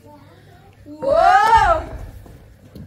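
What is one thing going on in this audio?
A girl shouts loudly.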